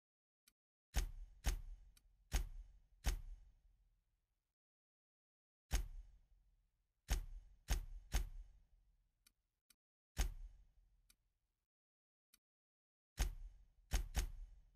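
Menu clicks sound with a short booming tail, one after another.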